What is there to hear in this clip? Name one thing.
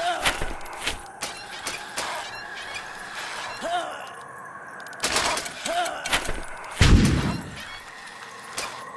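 A cartoon unicycle clatters and thumps over rough ground.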